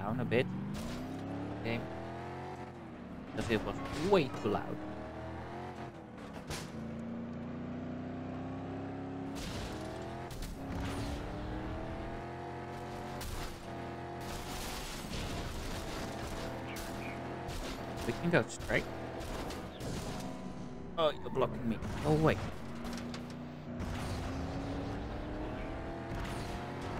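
A truck engine roars and revs up through the gears.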